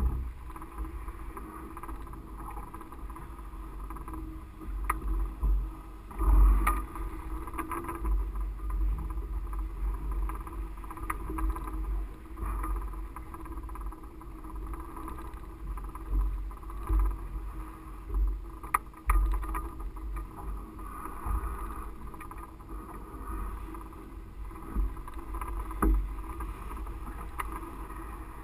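Wind rushes and buffets against a microphone.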